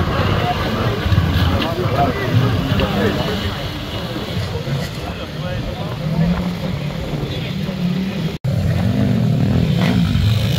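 An off-road vehicle's engine growls and revs loudly.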